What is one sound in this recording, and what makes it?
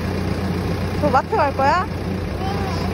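A toddler speaks in a high, bright voice close by.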